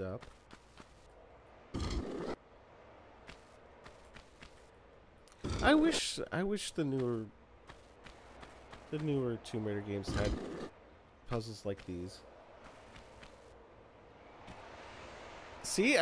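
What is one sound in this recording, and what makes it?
Footsteps tap lightly on a stone floor.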